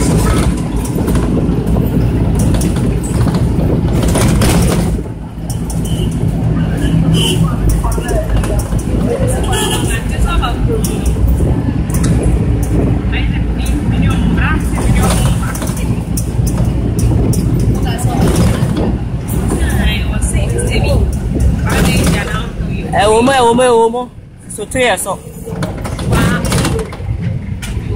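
A vehicle engine rumbles steadily from inside a moving car.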